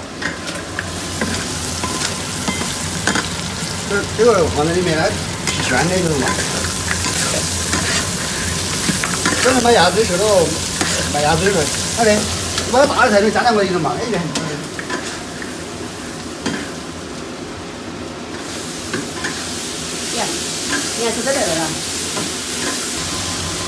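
A metal spatula scrapes and clatters against a wok.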